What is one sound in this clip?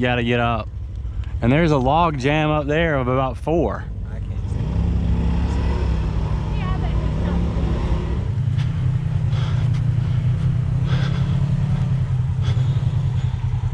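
A motorbike engine revs and rumbles close by.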